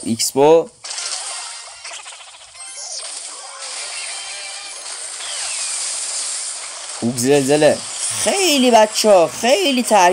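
Electronic game sound effects zap and clash during a battle.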